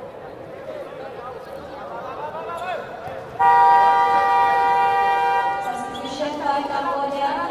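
A large indoor crowd murmurs and cheers, echoing through a hall.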